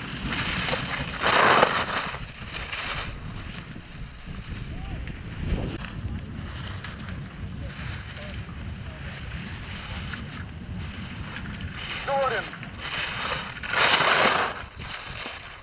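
Skis scrape and hiss across hard snow in sharp turns.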